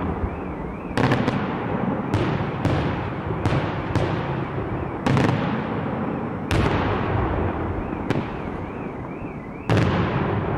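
Fireworks burst with loud booming bangs high overhead, echoing off the hills.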